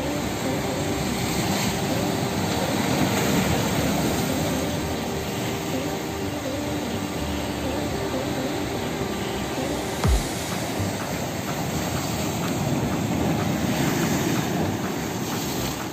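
Waves crash and surge against rocks close by.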